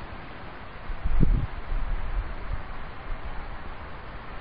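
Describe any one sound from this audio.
Wind blows and rumbles across the ground outdoors.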